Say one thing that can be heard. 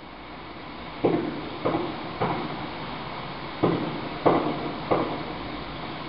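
A carpet is beaten with sharp, echoing thumps.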